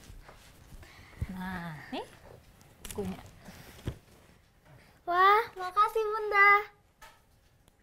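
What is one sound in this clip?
A woman speaks warmly.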